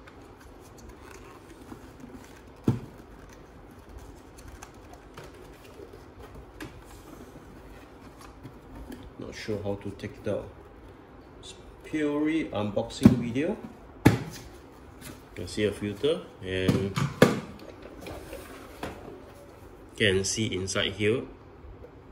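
Plastic parts of a vacuum cleaner click and knock as they are handled.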